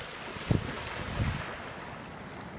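Geese splash and flap loudly across the water.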